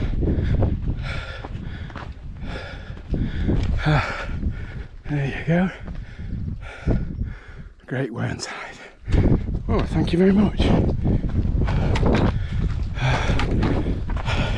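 An elderly man speaks close up, slightly breathless.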